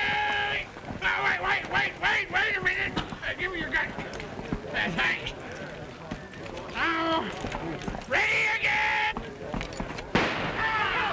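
Men talk and call out excitedly outdoors.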